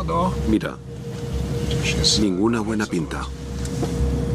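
A man speaks tensely through a headset microphone.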